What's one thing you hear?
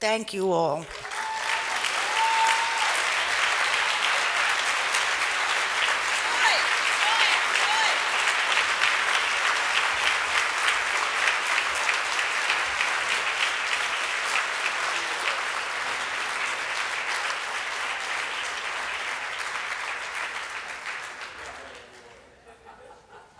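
A large crowd applauds and cheers loudly in a big hall, then the applause fades out.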